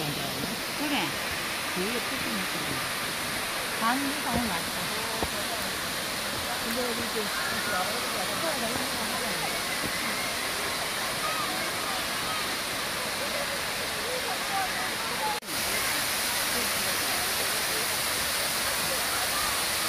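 A waterfall rushes steadily over rocks, outdoors.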